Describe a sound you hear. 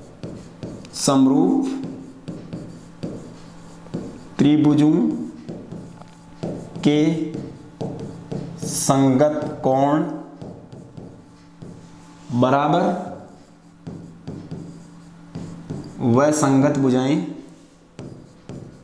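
A man speaks calmly and clearly in short phrases, close by.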